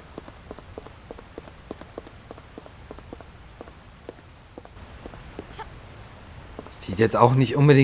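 Quick footsteps patter on hard stone.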